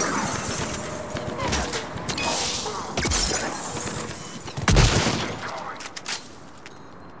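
Gunfire crackles and explosions boom in rapid bursts.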